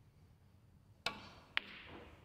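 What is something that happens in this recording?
A cue sharply strikes a snooker ball.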